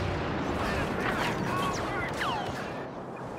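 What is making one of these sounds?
Laser bolts zip past with a high whine.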